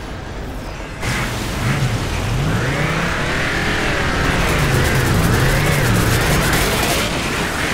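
A heavy vehicle engine rumbles and revs up and down.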